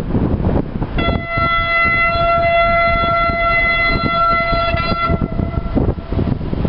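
A train horn sounds long and steady in the distance.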